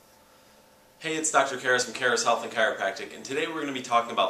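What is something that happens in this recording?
A young man speaks calmly and clearly to the listener, close to a microphone.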